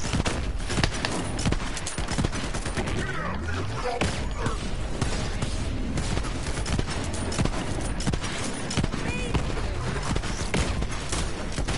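Explosions boom in a video game.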